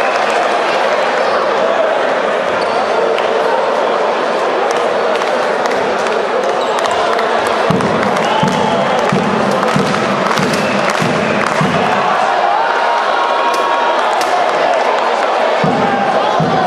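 A large indoor crowd murmurs and cheers in an echoing hall.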